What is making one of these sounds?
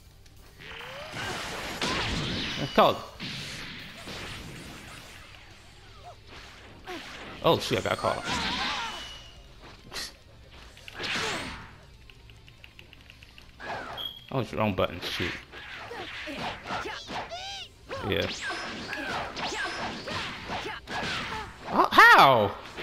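Energy blasts whoosh and crackle loudly.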